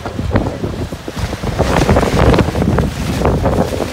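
Tent fabric flaps and rustles in the wind.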